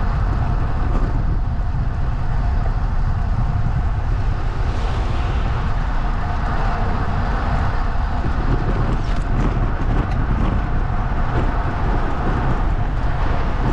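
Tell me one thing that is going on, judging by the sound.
Tyres roll over asphalt with a steady hum.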